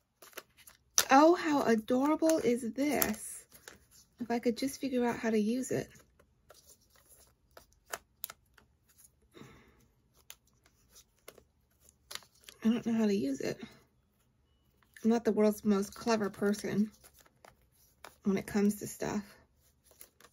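A woman talks calmly into a nearby microphone, in short bursts with pauses.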